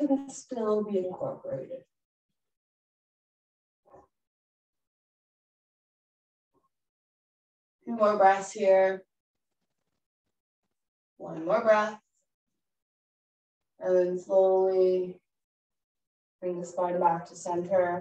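A woman speaks calmly in short phrases, with pauses between them.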